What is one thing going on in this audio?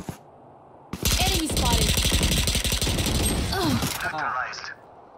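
Gunshots blast in quick bursts.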